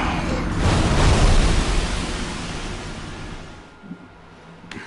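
A loud, rumbling roar swells and slowly fades.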